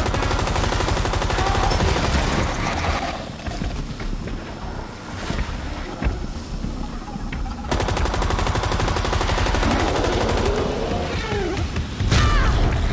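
A light machine gun fires in rapid bursts.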